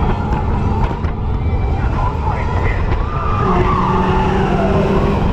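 A roller coaster car rumbles and rattles along its track.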